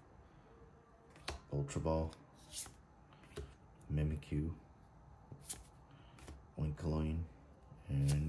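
Trading cards rustle and flick softly as they are sorted by hand.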